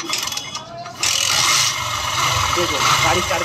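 A small motorbike engine runs with a loud, rough clatter.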